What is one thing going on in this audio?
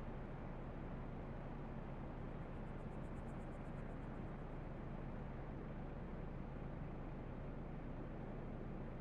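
A heavy diesel engine idles with a steady low rumble.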